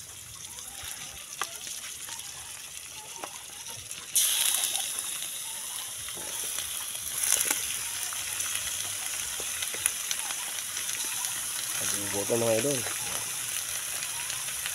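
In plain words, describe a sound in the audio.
Wet raw chicken pieces slap and squelch as a hand moves them from a bowl into a pot.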